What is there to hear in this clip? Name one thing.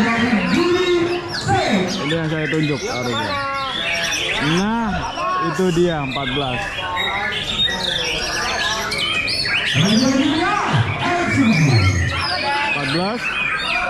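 A crowd of men chatters in the background outdoors.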